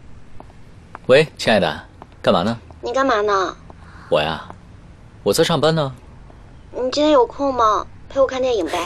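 A young man talks calmly on a phone nearby.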